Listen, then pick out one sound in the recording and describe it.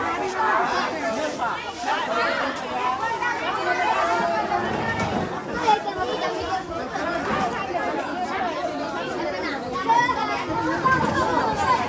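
Many children chatter and call out nearby outdoors.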